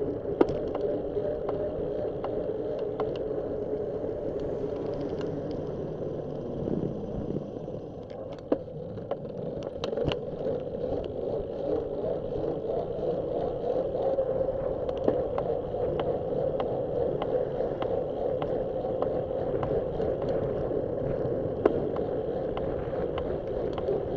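Tyres roll and hum on asphalt.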